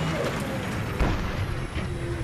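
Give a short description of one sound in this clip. A cannon fires with a loud boom.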